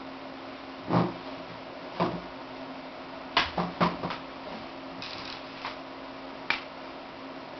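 A woman's footsteps thump close by on the floor.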